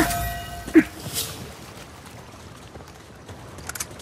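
Water rushes over rocks.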